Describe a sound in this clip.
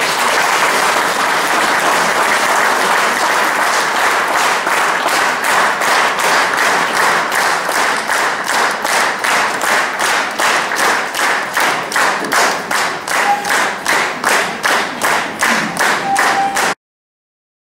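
A large audience applauds in an echoing hall, turning into rhythmic clapping in time.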